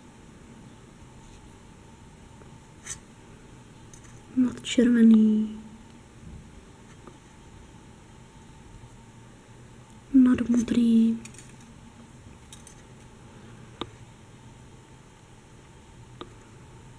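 Small beads click softly against a metal crochet hook.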